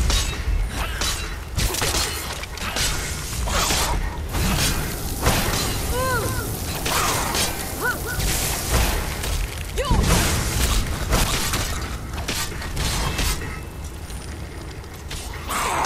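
Magic spells crackle and hiss in bursts.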